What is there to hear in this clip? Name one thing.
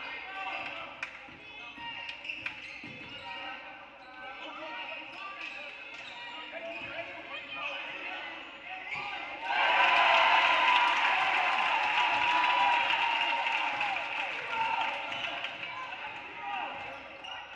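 Sneakers squeak sharply on a wooden floor in a large echoing gym.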